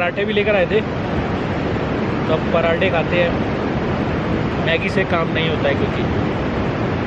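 A young man talks cheerfully close by.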